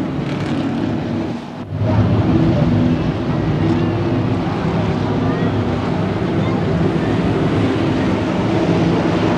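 Race car engines roar loudly as cars speed by on a track.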